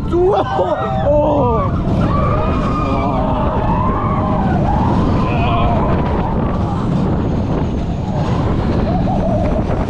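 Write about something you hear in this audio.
Young riders scream and shriek with excitement nearby.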